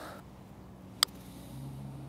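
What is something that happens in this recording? A putter taps a golf ball with a light click.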